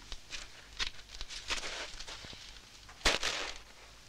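Grain rustles and shifts underfoot.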